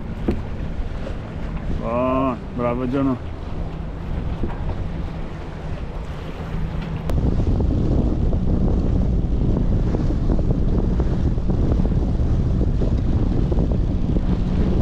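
Waves slap against a boat's hull.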